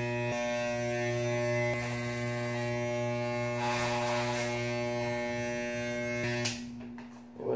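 An electric hair trimmer buzzes loudly and steadily, then switches off.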